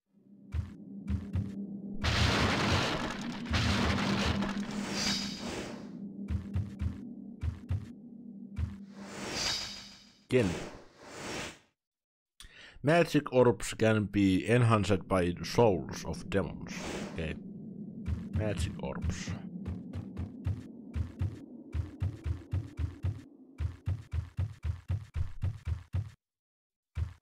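Footsteps thud quickly across wooden boards.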